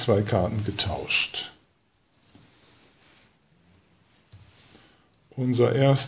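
Playing cards slide and tap softly onto a wooden table.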